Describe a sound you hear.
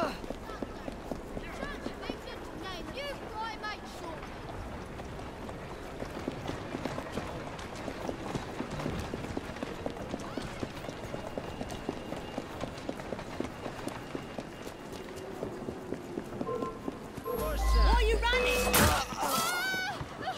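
Quick footsteps run over stone paving.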